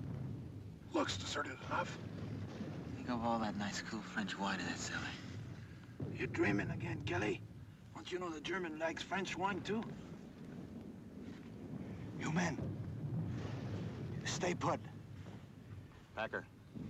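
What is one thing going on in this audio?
A man speaks urgently nearby.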